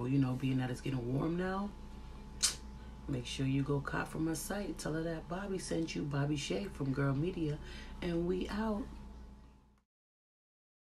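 A young woman talks calmly and closely to a microphone.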